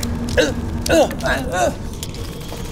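An elderly man makes playful, rising vocal sounds up close.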